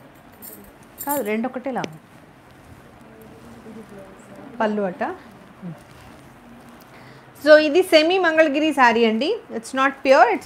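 A woman speaks calmly and close by, in short bursts.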